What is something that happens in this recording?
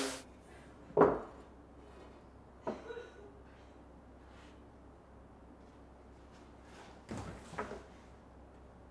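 Wooden boards knock together.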